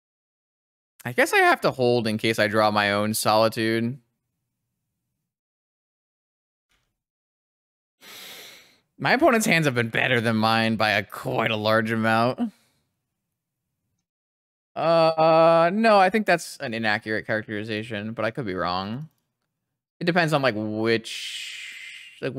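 A young man talks into a close microphone in short bursts, calmly and with animation.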